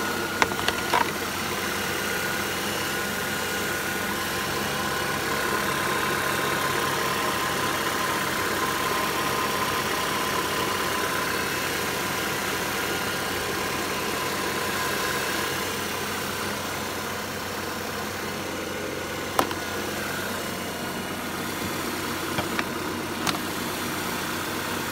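A car engine idles with a steady hum close by.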